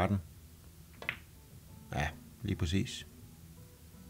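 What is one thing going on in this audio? Billiard balls click against each other and the cushions.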